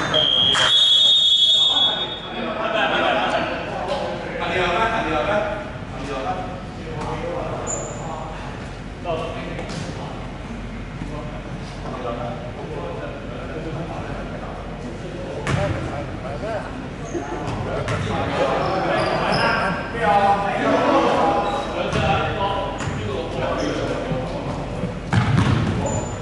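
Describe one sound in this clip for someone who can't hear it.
Young people talk and call out in a large echoing gym.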